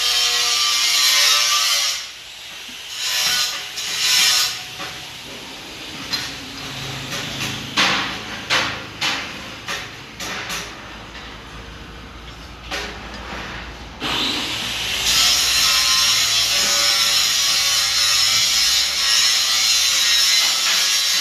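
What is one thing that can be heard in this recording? A metal lathe whirs as it cuts steel.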